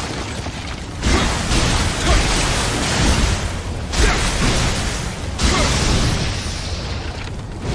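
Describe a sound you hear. A sword swishes and clashes in combat.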